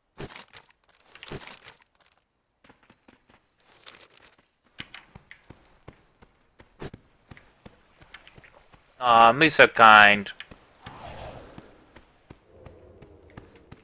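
Footsteps patter softly on stone.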